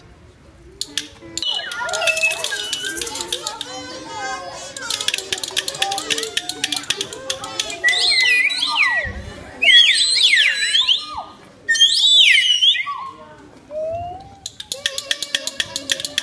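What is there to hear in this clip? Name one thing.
A group of children makes rapid clicking and popping sounds.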